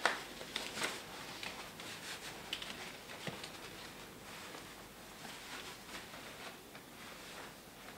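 Clothes rustle as a man moves about.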